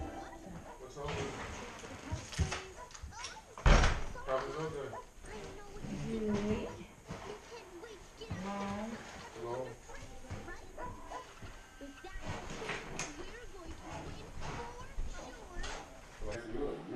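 A woman talks nearby in a room.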